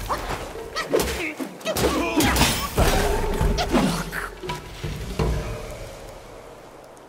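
A staff strikes an enemy with heavy impacts.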